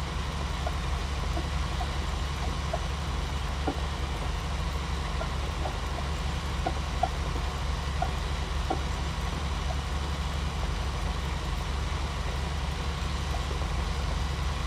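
A cultivator rattles and clanks over soil.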